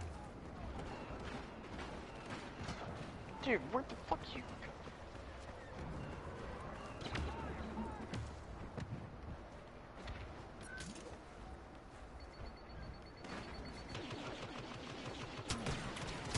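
Laser blasters fire in quick, sharp bursts.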